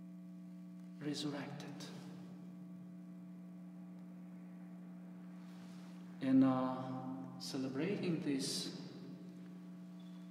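A middle-aged man speaks calmly and close through a microphone, in an echoing hall.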